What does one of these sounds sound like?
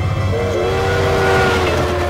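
A steam locomotive hisses nearby.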